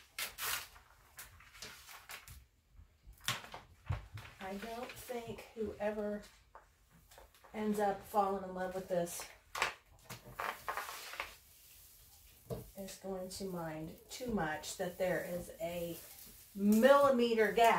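Hands smooth and press paper with soft rubbing.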